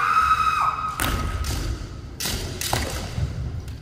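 Bamboo swords clack sharply against each other.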